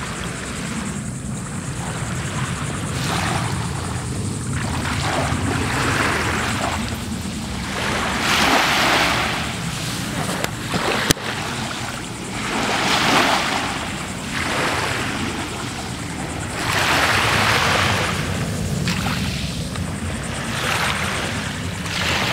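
Small waves wash gently onto a sandy shore in slow surges.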